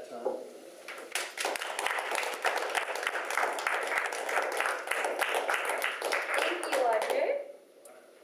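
A small audience applauds.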